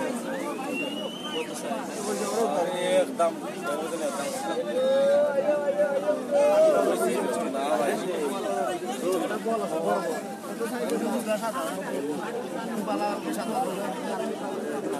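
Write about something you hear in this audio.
Many men and women chatter at once close by.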